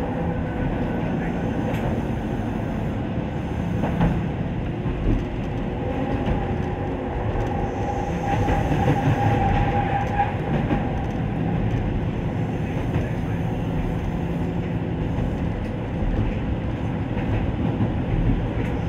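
A train's motor hums and whines.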